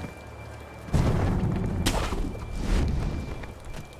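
A grappling rope whips and pulls taut.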